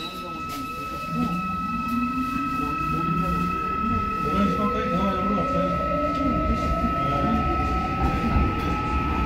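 A train's motor whines, rising in pitch as it speeds up.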